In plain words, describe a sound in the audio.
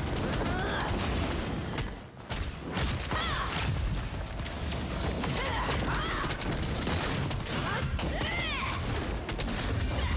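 A large dragon roars.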